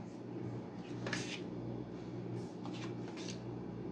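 Cards are laid down onto a table with soft taps.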